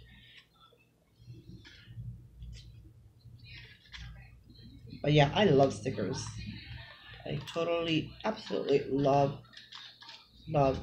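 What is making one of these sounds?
Paper cards rustle and tap on a table.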